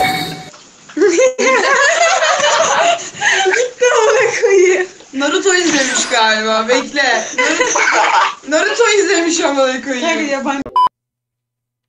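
Young women talk excitedly and laugh over an online call.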